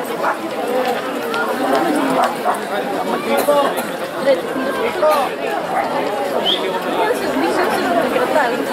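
Many men and women chatter nearby outdoors.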